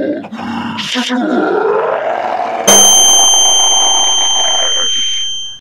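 An elderly man screams loudly in distress.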